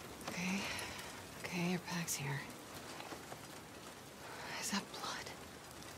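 A bag rustles as someone rummages through it.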